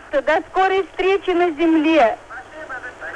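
A young woman sings into a microphone.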